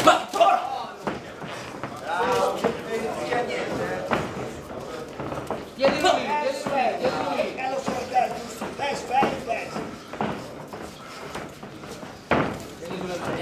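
Boxing gloves thud against bodies in sharp punches.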